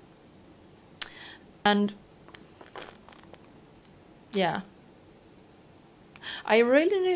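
A young woman speaks close to a microphone in short, hesitant bursts.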